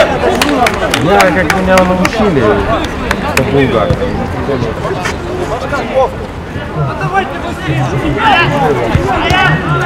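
Many young men shout and call out to each other outdoors.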